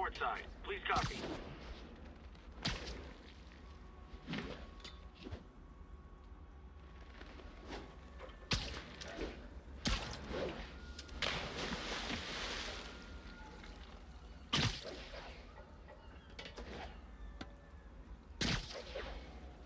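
Heavy thuds of landings sound now and then.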